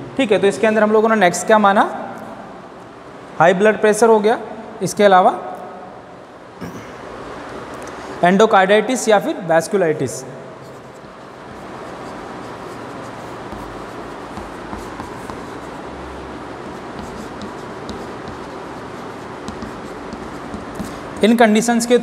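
Chalk scratches and taps on a blackboard.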